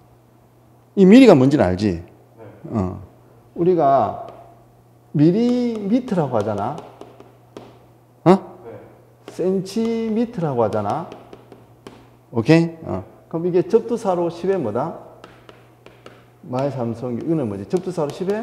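A man lectures with animation through a microphone.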